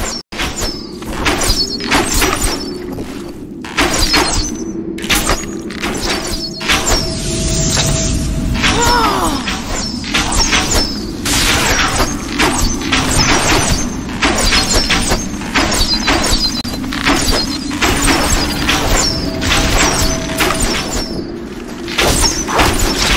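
Magic spells crackle and burst in rapid blasts.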